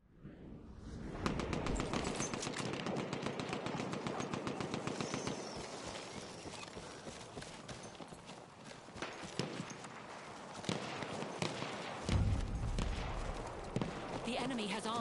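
Footsteps run quickly over grass and rocky ground.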